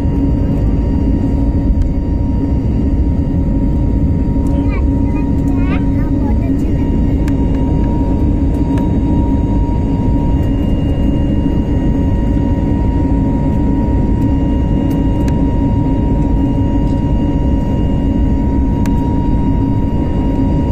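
Jet engines roar steadily with a loud, low drone.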